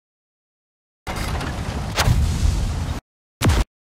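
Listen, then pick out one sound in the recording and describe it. A shell explodes with a heavy boom.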